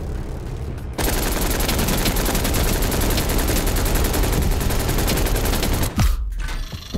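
A helicopter's rotor thuds loudly nearby.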